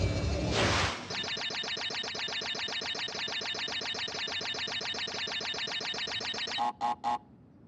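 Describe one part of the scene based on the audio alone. A rapid electronic ticking counts up points.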